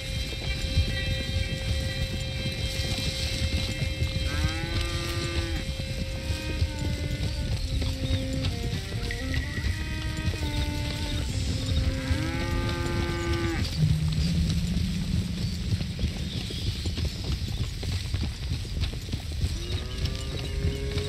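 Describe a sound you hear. Horses' hooves thud on grassy ground.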